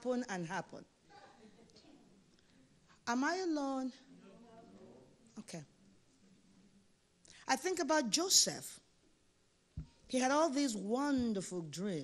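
A woman preaches with passion into a microphone, her voice ringing in an echoing hall.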